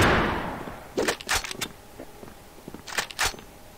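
A rifle bolt clicks and clacks as it is worked.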